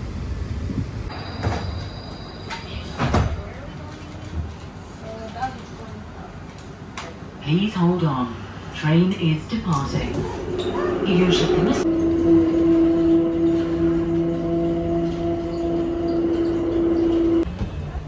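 A metro train hums and rumbles as it moves.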